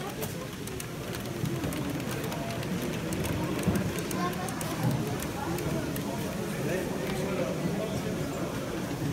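A model train rolls along the track with a faint whir and click.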